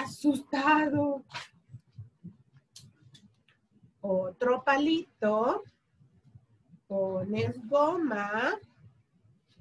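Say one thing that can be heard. A young woman speaks calmly and clearly, close by, in short phrases with pauses.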